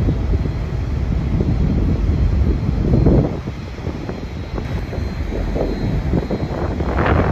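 Wind gusts across the microphone outdoors, rumbling low.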